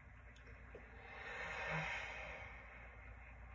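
A man exhales loudly close by.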